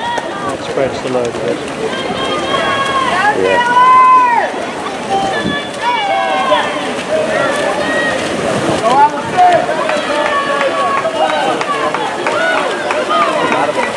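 Swimmers splash steadily through the water.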